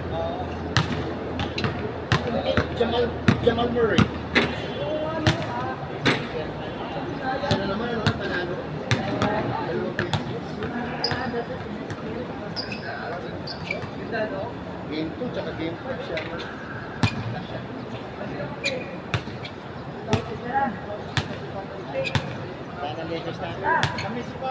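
A basketball bounces on an outdoor court.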